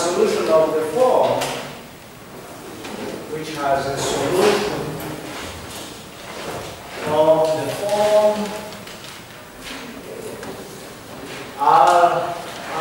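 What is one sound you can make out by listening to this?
A man lectures in a raised voice, heard in an echoing room.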